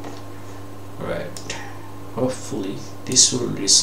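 A middle-aged man speaks calmly through a computer microphone.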